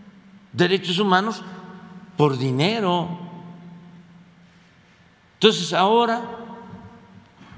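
An elderly man speaks slowly and deliberately into a microphone, in short bursts with pauses.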